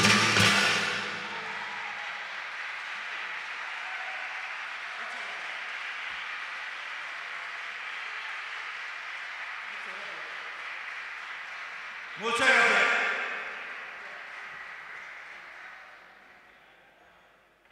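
An audience applauds and cheers in an open space.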